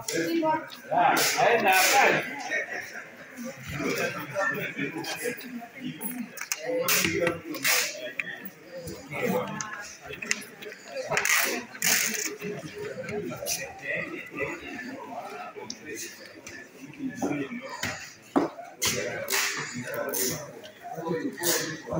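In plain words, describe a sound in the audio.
Papers rustle and shuffle by hand.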